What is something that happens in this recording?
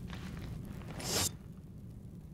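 A short rising whoosh sounds as a game pauses.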